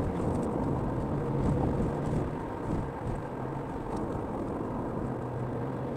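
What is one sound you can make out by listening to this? Tyres roll on asphalt with a steady low rumble.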